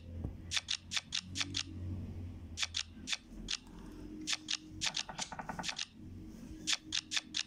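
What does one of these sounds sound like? Playing cards snap into place with quick, crisp clicks.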